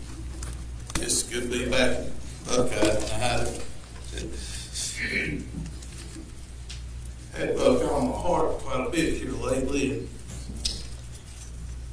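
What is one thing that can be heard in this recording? An elderly man speaks through a microphone in an echoing hall, with pauses.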